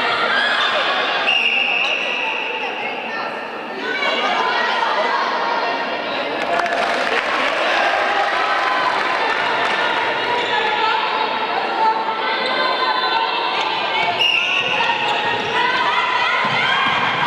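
A crowd of spectators cheers and shouts loudly in an echoing indoor hall.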